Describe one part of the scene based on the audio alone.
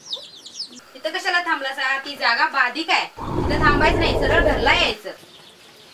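A woman speaks sharply.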